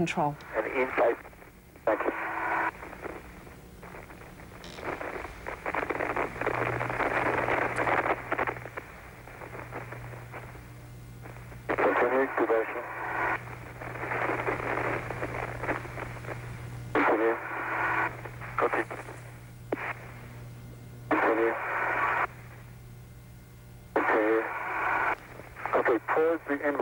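A man speaks calmly over a crackly radio link.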